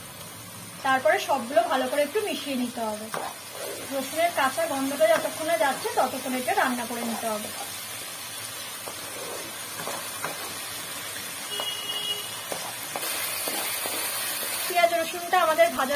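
Paste sizzles softly in hot oil.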